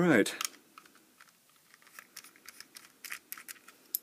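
A small screwdriver turns a screw with faint ticking clicks.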